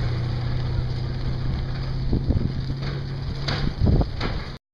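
A truck engine rumbles as the truck drives away.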